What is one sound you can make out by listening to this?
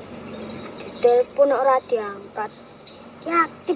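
A young boy speaks nearby with a questioning tone.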